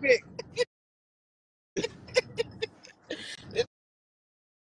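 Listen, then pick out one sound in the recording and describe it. A man laughs loudly over a phone call.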